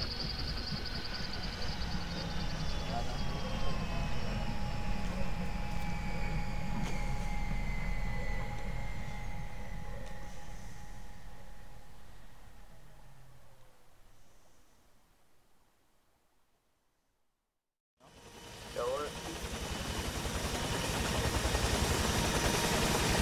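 A helicopter's rotor thumps steadily, fades away, then returns loudly.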